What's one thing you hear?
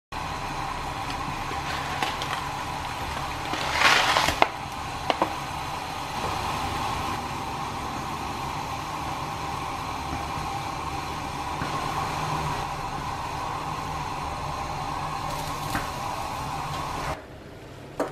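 Water boils and bubbles steadily in a pan.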